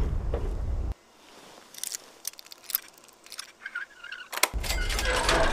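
A lock clicks and scrapes as it is picked.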